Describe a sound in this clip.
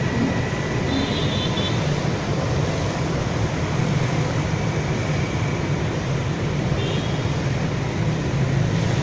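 Motorbikes and cars roar steadily along a busy road.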